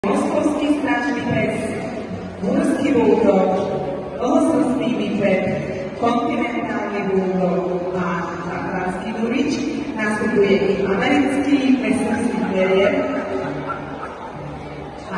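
A woman speaks steadily into a microphone over loudspeakers in a large echoing hall.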